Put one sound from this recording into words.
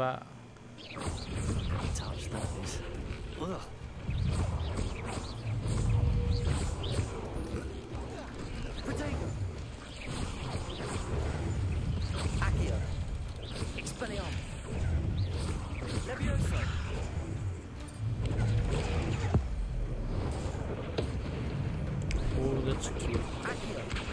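Magic spells crackle and blast in quick bursts.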